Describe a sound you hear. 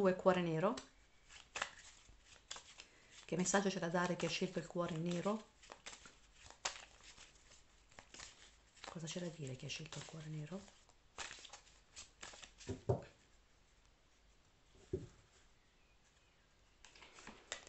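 Cards are shuffled by hand with soft slaps and rustles.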